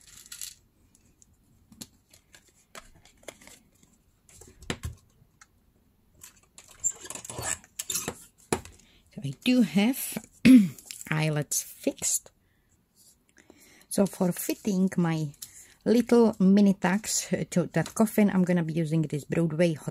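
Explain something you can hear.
Stiff card rustles and taps as it is handled.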